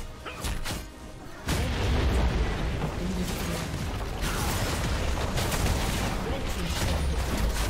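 Game spells crackle and explode in a busy battle.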